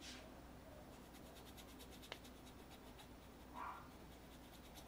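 A paintbrush scrubs softly across a canvas.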